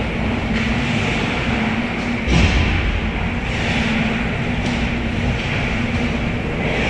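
A steady hum fills a large echoing rink.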